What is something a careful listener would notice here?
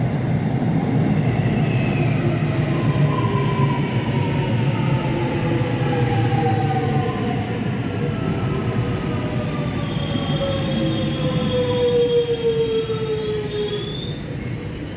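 A train's electric motors whine, falling steadily in pitch as it brakes.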